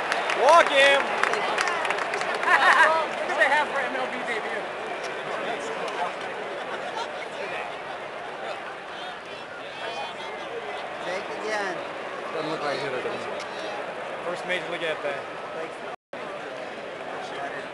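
A large stadium crowd murmurs and chatters steadily.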